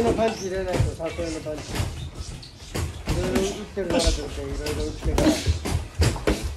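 A young man talks in short bursts nearby.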